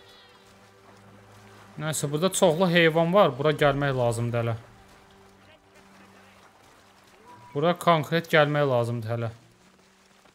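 A horse wades and splashes through shallow water.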